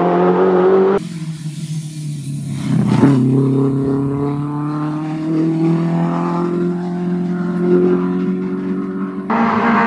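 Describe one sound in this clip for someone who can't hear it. A rally car engine revs up and down as the car races past close by.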